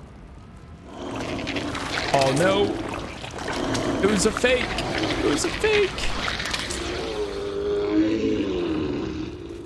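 A large creature growls and roars.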